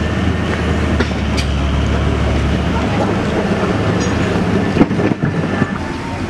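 A truck engine idles and rumbles nearby.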